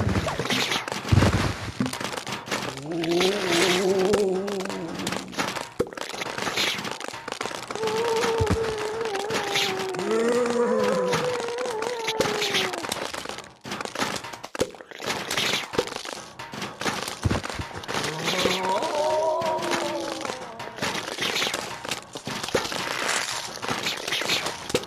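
Cartoon plants pop as they shoot peas.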